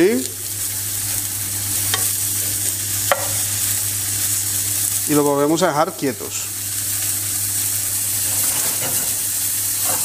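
A wooden spatula scrapes and knocks against a frying pan.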